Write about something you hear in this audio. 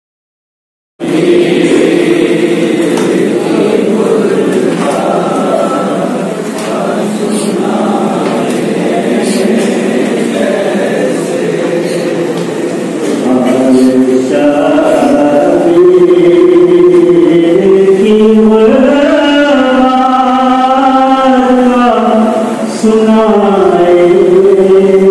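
A crowd of young men chants in unison, heard loudly up close.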